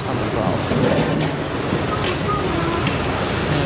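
Plastic cups clatter.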